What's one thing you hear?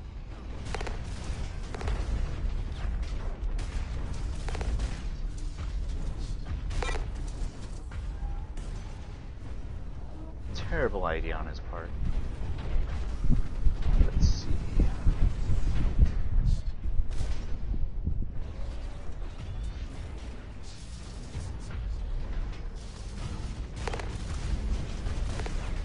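A giant robot's engine rumbles low and steadily.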